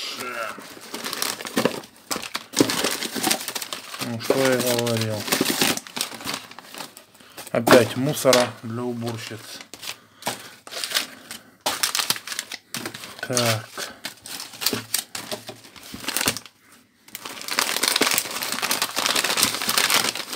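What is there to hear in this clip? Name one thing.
Paper and plastic wrapping crinkle and rustle as hands unwrap it.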